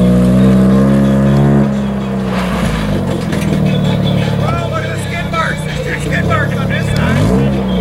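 Tyres skid and scrape on loose gravel.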